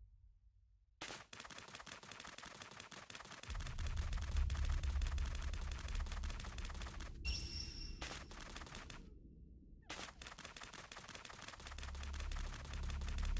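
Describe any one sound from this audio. Metal feet clatter rapidly as a robot scuttles along.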